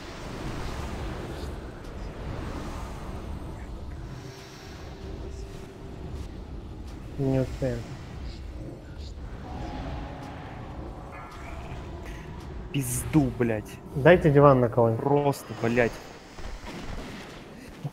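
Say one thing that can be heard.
Magic blasts and clashing battle effects crackle and boom.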